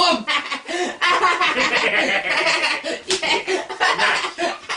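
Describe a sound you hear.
Two men laugh loudly together.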